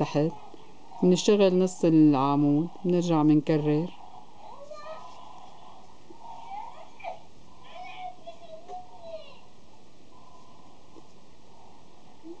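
Yarn rustles softly as a crochet hook pulls it through loops.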